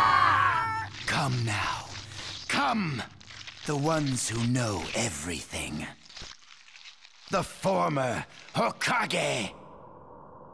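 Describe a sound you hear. A man shouts hoarsely with great intensity.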